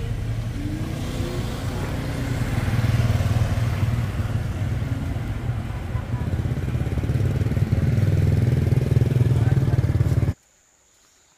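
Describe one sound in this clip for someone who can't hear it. Motorbikes ride past with puttering engines.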